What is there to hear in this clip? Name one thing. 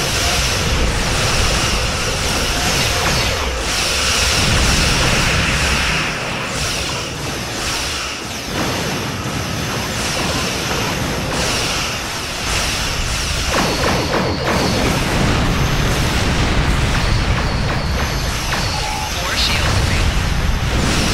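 Laser weapons fire in bursts with buzzing zaps.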